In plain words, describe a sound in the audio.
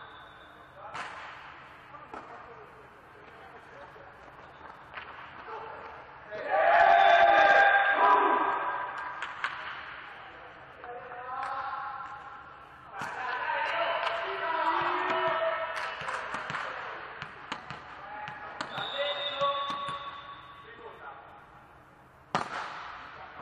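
A volleyball is struck hard with sharp slaps that echo in a large hall.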